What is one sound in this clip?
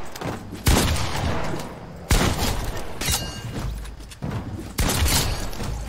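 Loud gunshots crack at intervals, each followed by a short echo.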